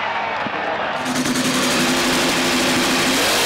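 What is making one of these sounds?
A drag racing engine idles with a loud, rough rumble and revs.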